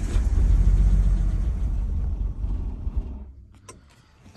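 A car engine idles with a low rumble, then cuts out.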